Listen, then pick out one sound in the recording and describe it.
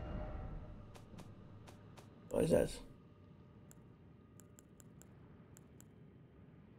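Soft clicking ticks sound quickly, one after another.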